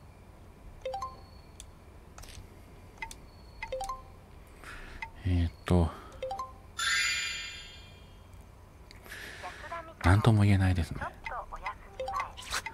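Short electronic beeps chime.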